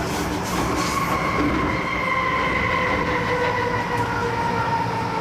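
Train brakes squeal as the train slows to a stop.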